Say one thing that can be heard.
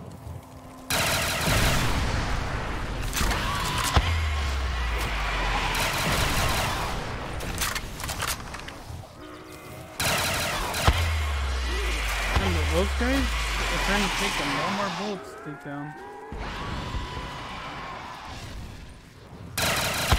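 Gunshots crack out in sharp bursts.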